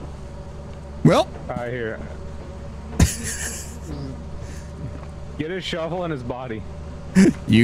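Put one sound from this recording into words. A middle-aged man talks with animation into a microphone.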